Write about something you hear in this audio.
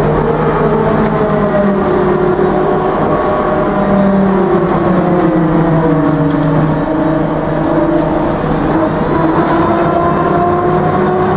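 A bus rumbles and rattles over the road.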